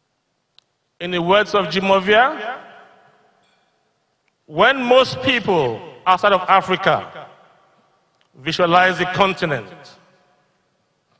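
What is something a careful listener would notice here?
An older man speaks calmly into a microphone, heard through loudspeakers in a large hall.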